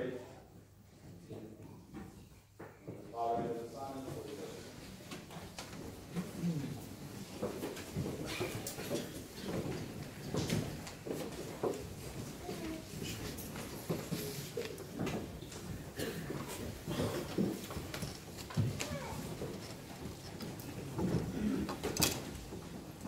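A man speaks and chants through a microphone in a large echoing hall.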